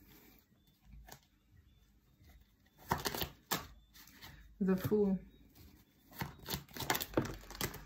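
Playing cards riffle and slap as they are shuffled.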